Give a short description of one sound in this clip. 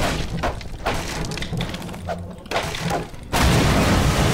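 A crowbar smashes against wooden boards, which crack and splinter.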